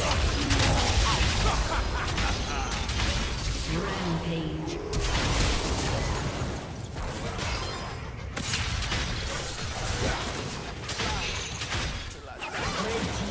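Magical blasts burst and crackle in a busy video game battle.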